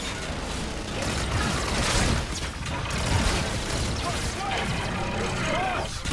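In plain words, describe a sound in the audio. Rapid gunfire bursts out in quick shots.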